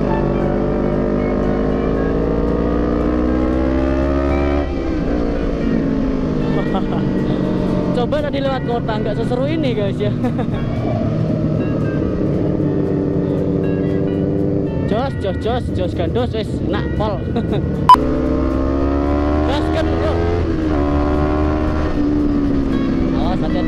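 A motorcycle engine hums steadily and rises and falls in pitch as it speeds up and slows down.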